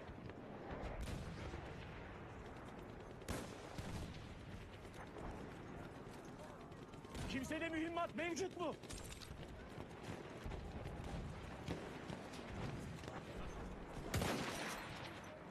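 Rifle shots crack sharply.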